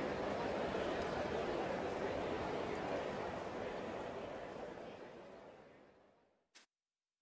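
A large crowd cheers and applauds, then fades to silence.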